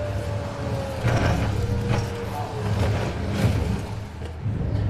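A car crashes and scrapes through bushes and snow.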